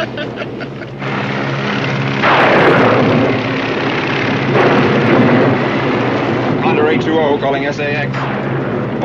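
A propeller plane's engines drone steadily.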